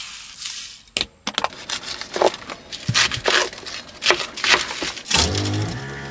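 A knife chops through cabbage onto a cutting board.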